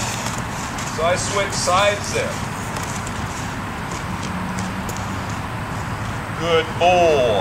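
A man speaks calmly nearby, outdoors.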